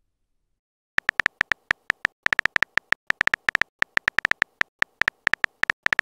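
Rapid keyboard taps click one after another.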